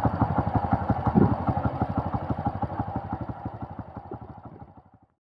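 A truck engine throbs rapidly as the truck drives away and fades into the distance.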